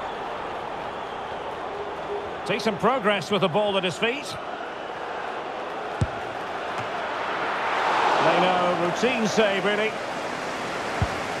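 A stadium crowd murmurs and cheers steadily, swelling for a moment.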